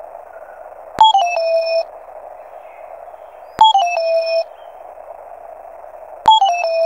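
A falling electronic game chirp sounds several times.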